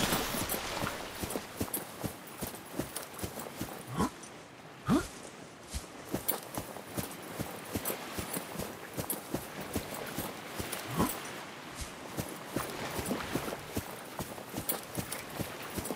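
Small waves lap gently at a shore.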